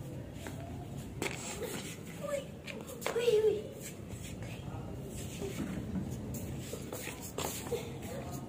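Bare hands and shoes thump and scuff on a hard tiled floor.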